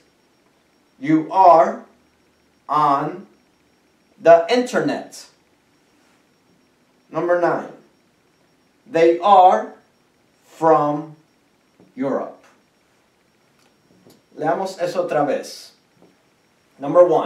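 A man speaks calmly and clearly in short phrases, close by, with pauses between them.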